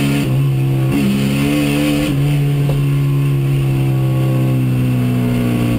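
A rally car engine roars loudly from inside the cabin, shifting through gears.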